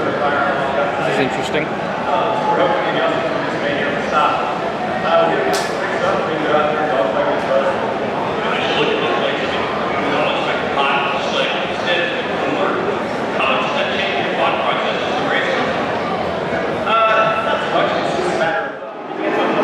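A crowd of spectators chatters nearby.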